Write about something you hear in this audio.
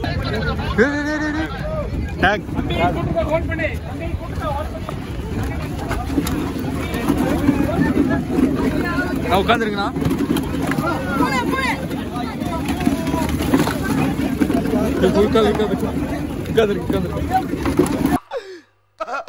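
A large crowd chatters loudly outdoors.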